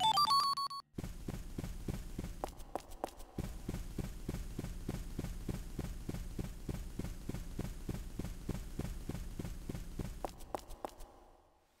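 Quick footsteps tap rhythmically on a hard floor.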